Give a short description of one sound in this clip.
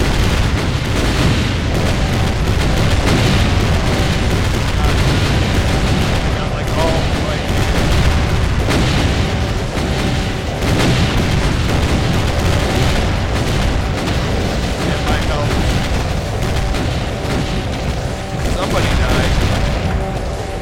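A heavy weapon fires in a rapid, roaring stream of blasts.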